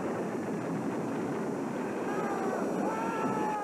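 An explosion roars and rumbles.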